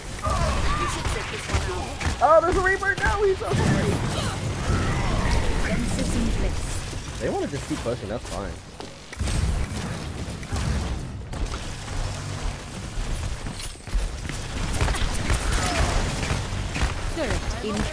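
Rapid gunfire and energy blasts from a game crackle constantly.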